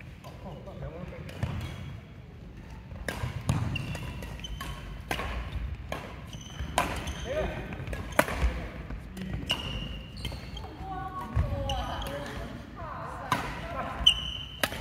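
Racquets strike a shuttlecock with sharp pops in an echoing hall.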